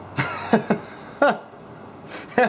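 Two men laugh close by.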